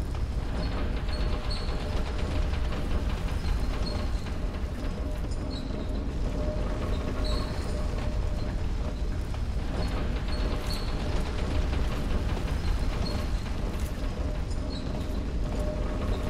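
Heavy metal armour clanks with footsteps on stone.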